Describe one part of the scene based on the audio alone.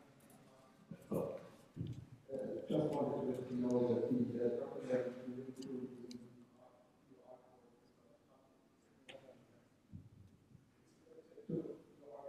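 A man speaks into a microphone in a large echoing room.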